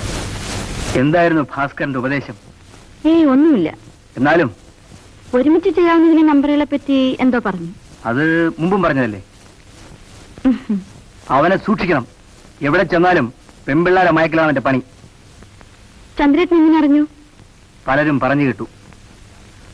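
A young woman speaks softly and closely.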